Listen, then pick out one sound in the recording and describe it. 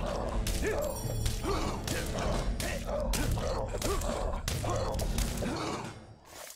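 Blows clash in a fight with short, sharp impacts.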